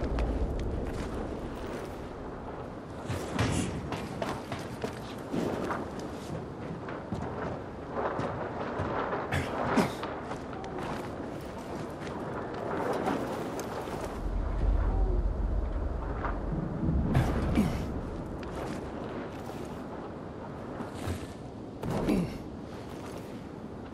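Hands and boots clank on the metal rungs of a ladder as someone climbs.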